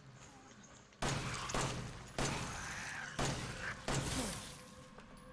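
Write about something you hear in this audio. A pistol fires several loud shots in a small echoing space.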